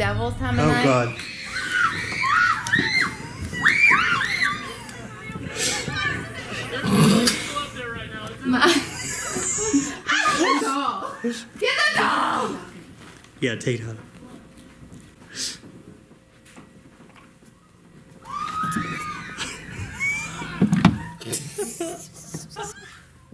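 A young woman talks excitedly close by.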